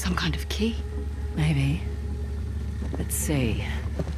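A second woman asks a question calmly, close by.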